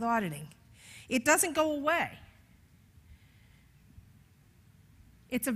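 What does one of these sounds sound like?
An elderly woman speaks with animation through a microphone.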